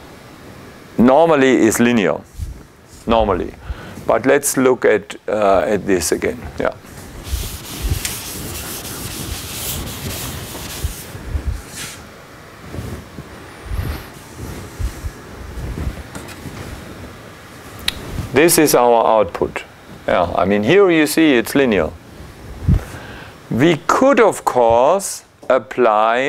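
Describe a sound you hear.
A middle-aged man speaks calmly and clearly nearby, with pauses.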